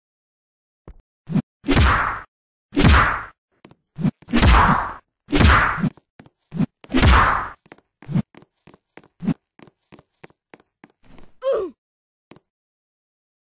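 Heavy punches thud and whoosh in quick bursts.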